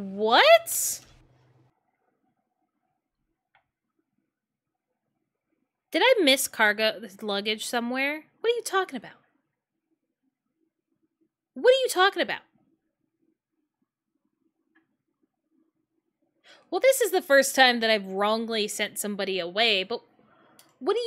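A young woman talks with animation into a close microphone, with pauses between bursts.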